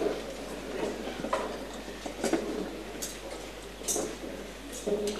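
A crowd murmurs and chatters nearby in a large, echoing room.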